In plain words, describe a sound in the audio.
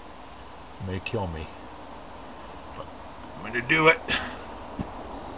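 A middle-aged man speaks close by in short bursts.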